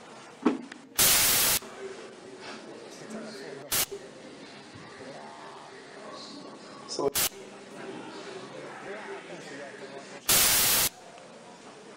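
Loud bursts of static hiss suddenly and cut off.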